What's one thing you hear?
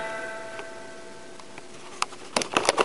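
A guitar note rings out through an amplifier and slowly fades.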